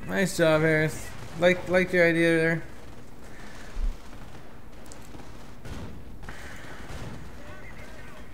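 Gunfire rattles.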